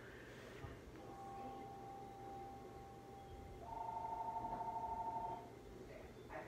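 Soft chiming tones play from a television speaker.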